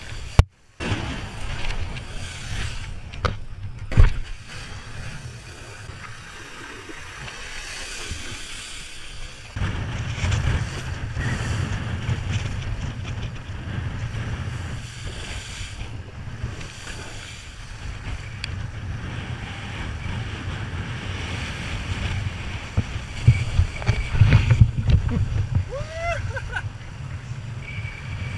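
A board skims and splashes across shallow water.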